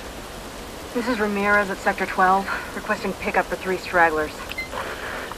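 A woman speaks calmly over a radio.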